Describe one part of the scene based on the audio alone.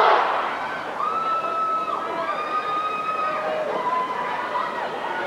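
A marching band plays long held notes outdoors.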